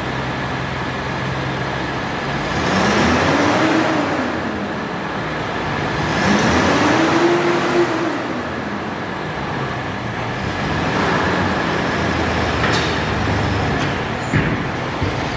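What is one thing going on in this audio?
An engine idles with a low rumble.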